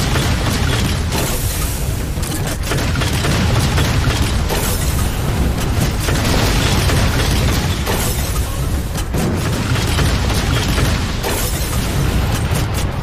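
A heavy mounted gun fires in rapid bursts.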